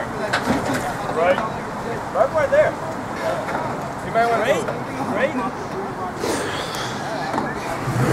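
A man talks excitedly nearby outdoors.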